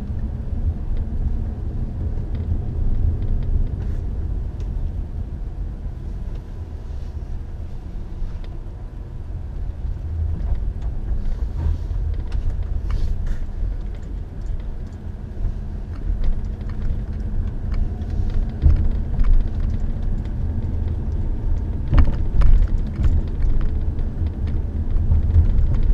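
A car engine rumbles steadily from inside as the car drives along.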